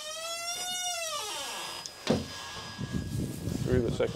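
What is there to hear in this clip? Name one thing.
A heavy door bangs shut.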